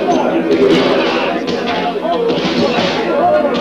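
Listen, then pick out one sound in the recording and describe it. Chairs and furniture crash to the floor.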